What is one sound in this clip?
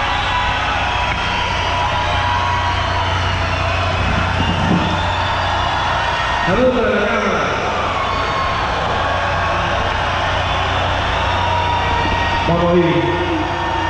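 A rock band plays loudly on a big outdoor stage.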